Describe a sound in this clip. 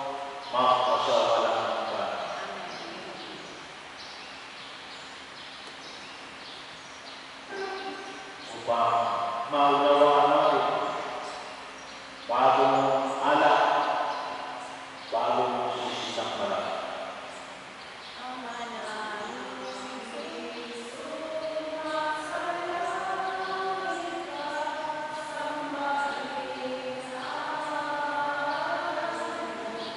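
A man chants through a loudspeaker in a large echoing hall.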